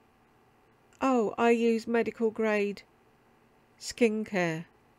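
A woman talks calmly and close up.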